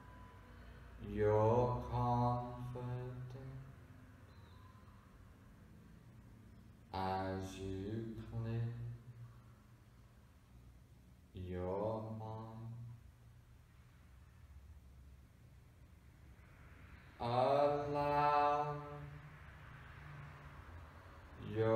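A man speaks slowly and soothingly in short phrases, in an echoing room.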